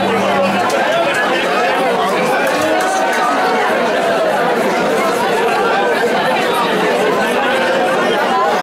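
A man sings and shouts into a microphone over a loudspeaker.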